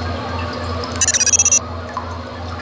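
A short, bright electronic chime rings out.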